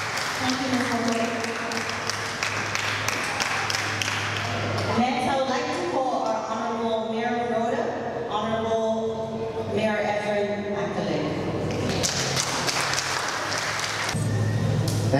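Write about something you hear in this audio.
A young woman speaks into a microphone over loudspeakers.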